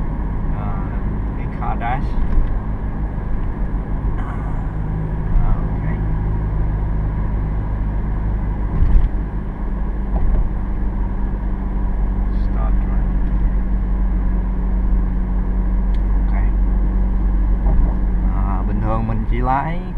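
Tyres roll and rumble on the road.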